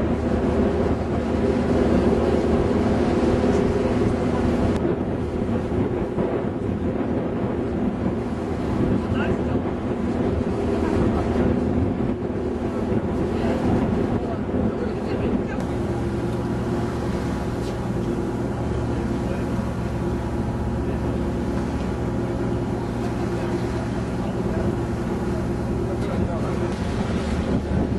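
Water splashes and rushes past a moving boat.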